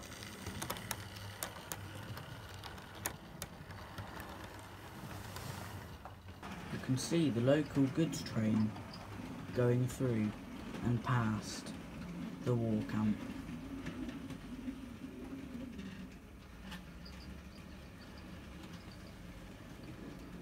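A model train rattles softly along its track.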